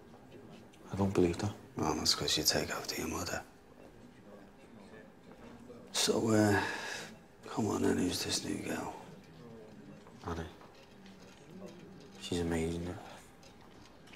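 A young man speaks quietly, close by.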